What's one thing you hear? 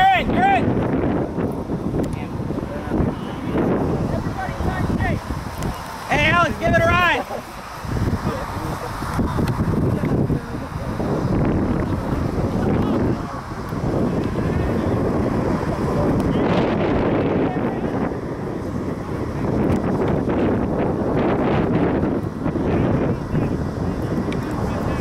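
Young men shout to each other outdoors across a playing field.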